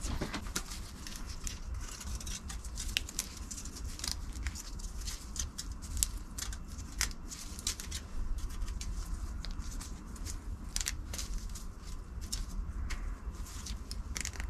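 A plastic sheet crinkles and rustles as it is handled.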